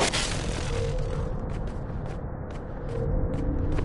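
Quick light footsteps patter on stone.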